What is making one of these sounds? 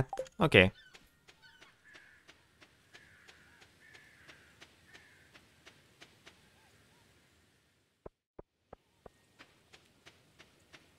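Light footsteps tap quickly and evenly on the ground.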